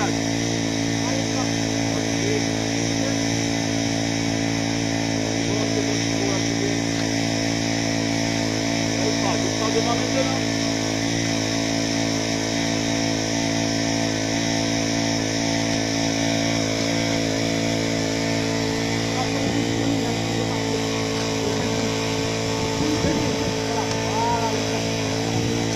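A hydraulic rescue tool's motor drones steadily and loudly.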